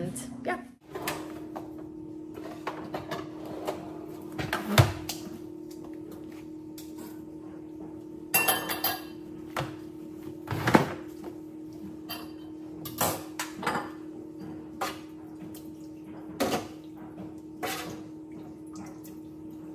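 Metal utensils clink and scrape against a cooking pot.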